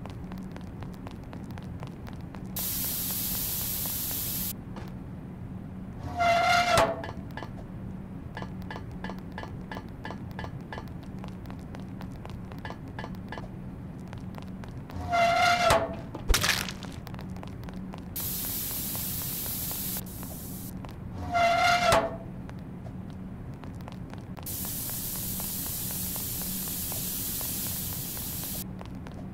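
Light footsteps patter quickly.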